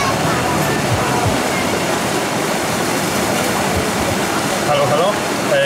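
A paddle splashes in churning water.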